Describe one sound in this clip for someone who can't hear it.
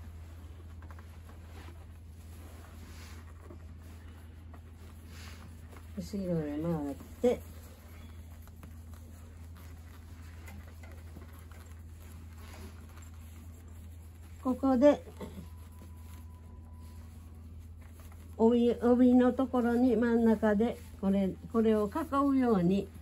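Fabric rustles as a sash is pulled and tied.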